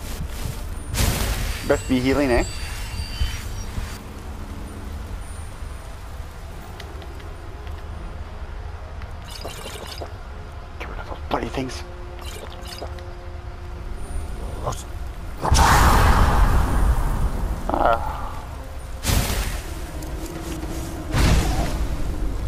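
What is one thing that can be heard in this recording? A magic spell crackles and flares in bursts.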